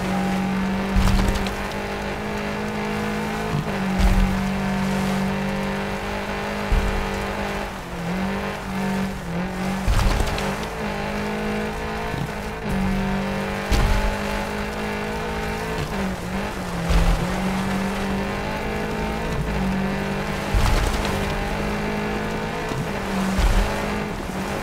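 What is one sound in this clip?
A rally car's tyres thump over rough ground.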